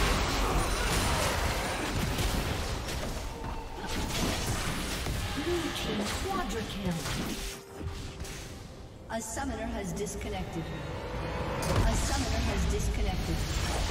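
Game spell effects crackle and explode during a fight.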